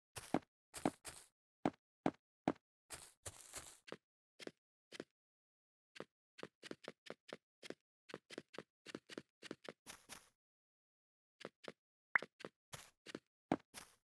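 Blocks are placed with short, quick thuds in a rapid, uneven rhythm.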